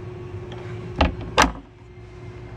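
A plastic hatch lid thuds shut.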